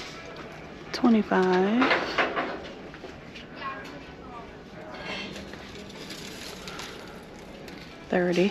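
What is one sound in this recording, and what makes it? Artificial flowers rustle softly as a hand brushes them.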